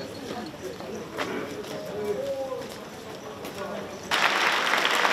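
A crowd murmurs and shuffles in a hall.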